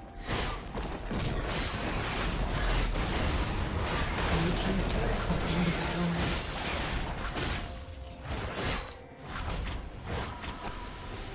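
Game spell effects crackle and clash in a fast battle.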